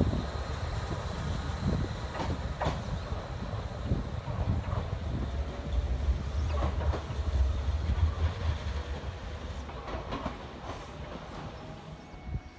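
A train rumbles away along the tracks, its sound fading.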